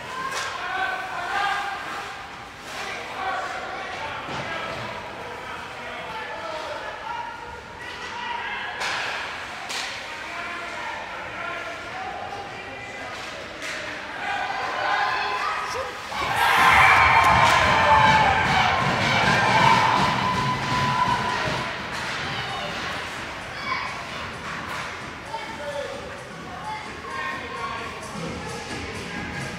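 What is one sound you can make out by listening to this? Spectators chatter and call out in an echoing rink.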